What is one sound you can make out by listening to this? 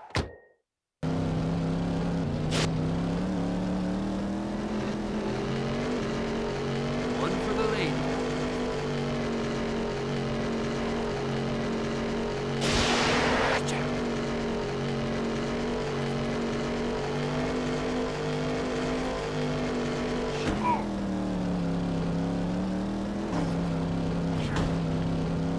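A race car engine roars steadily.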